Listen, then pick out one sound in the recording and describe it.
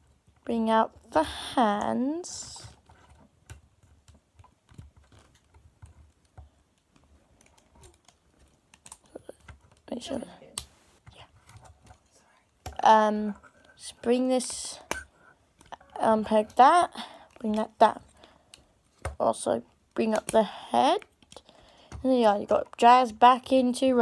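Plastic parts of a toy figure click and rattle as they are turned.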